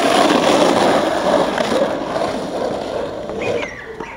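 Skateboard wheels roll and rumble over rough asphalt.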